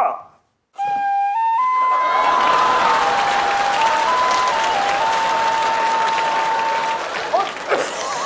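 A recorder plays a steady tune with a buzzing tone.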